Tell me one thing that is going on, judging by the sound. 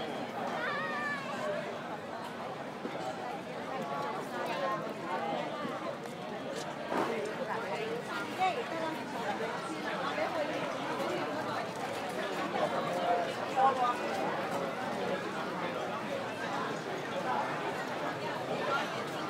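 A large crowd of diners chatters all around, outdoors.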